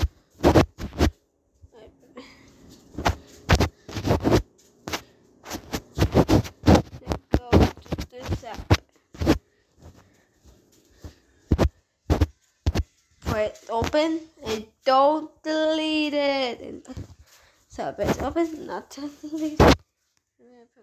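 A child speaks with animation close to a phone microphone.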